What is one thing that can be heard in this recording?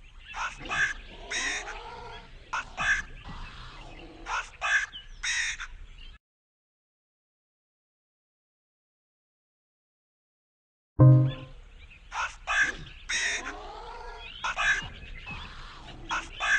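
Chirpy cartoon game sounds and music play, then stop briefly.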